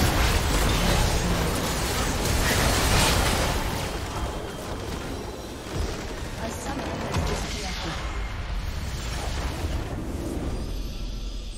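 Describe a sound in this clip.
Game spell effects and fighting sounds crash and boom loudly.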